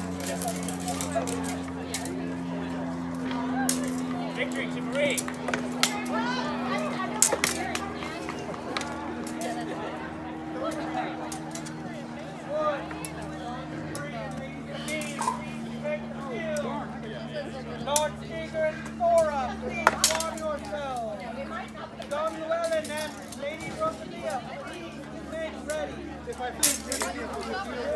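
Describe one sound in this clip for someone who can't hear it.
A crowd of men and women chatters in the background outdoors.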